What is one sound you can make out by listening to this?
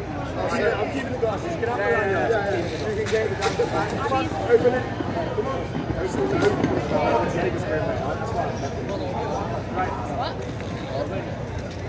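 A young woman talks outdoors on a street.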